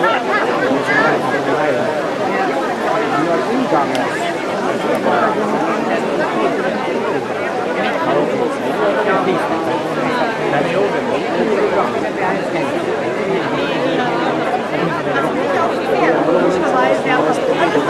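A large crowd of men and women chatters all around outdoors.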